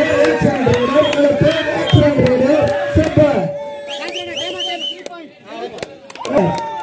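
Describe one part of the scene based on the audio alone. Young men call out loudly to one another nearby.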